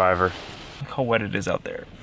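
Rain patters on a car window.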